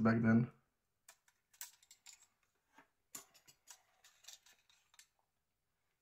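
Small plastic parts click and snap faintly as a device is taken apart.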